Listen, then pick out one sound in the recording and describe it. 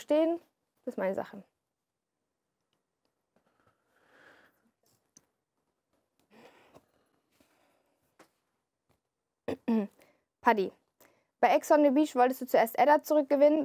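A young woman reads aloud calmly into a microphone.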